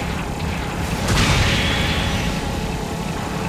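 A beam gun fires with a sudden loud whooshing blast.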